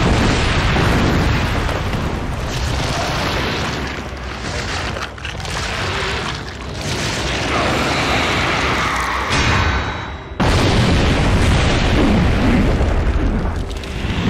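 A huge monster roars.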